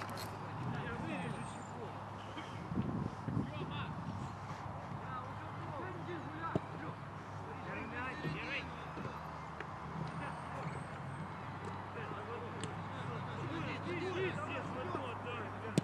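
Young men shout to each other in the distance outdoors.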